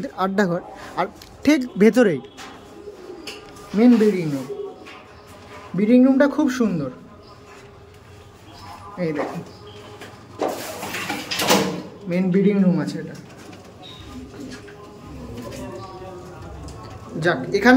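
Pigeons coo softly, close by.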